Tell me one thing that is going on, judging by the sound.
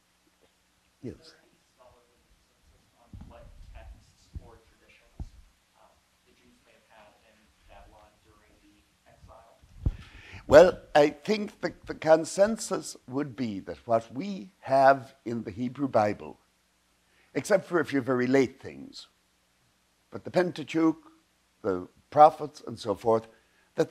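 An elderly man speaks calmly to an audience in a room, faint at first and then louder and clearer.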